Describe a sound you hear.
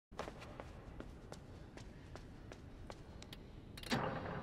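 Footsteps patter steadily on a hard floor.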